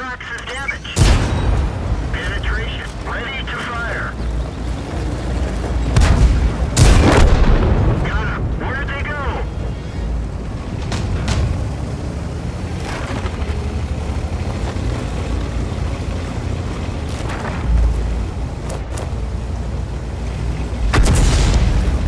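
A tank's gun fires with a loud boom.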